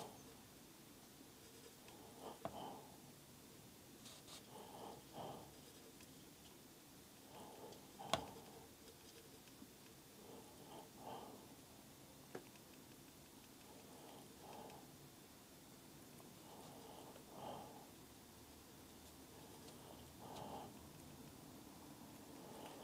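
A brush scratches softly across paper in short strokes.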